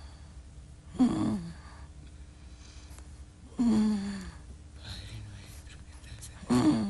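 A woman moans weakly close by.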